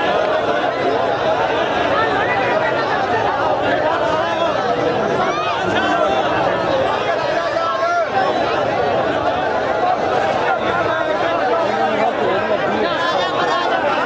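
A large crowd of men talks and shouts all at once, close by, outdoors.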